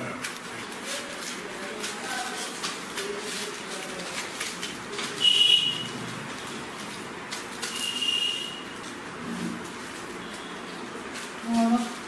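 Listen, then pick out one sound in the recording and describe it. A man taps and handles a stiff roll of paper with light clicks and rustles.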